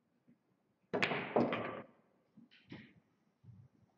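Billiard balls knock together and roll on the table.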